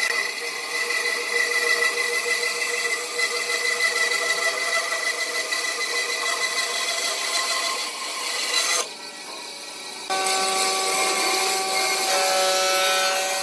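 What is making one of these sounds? A band saw cuts through burl wood.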